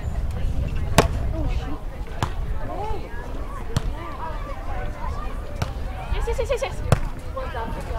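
A volleyball is struck with a sharp slap of hands.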